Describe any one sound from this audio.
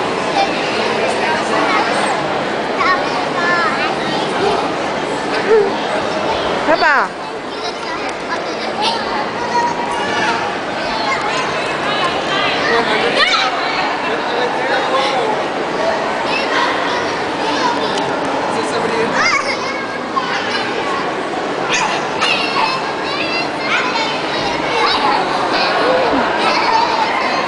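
Young children chatter and squeal nearby in a busy echoing room.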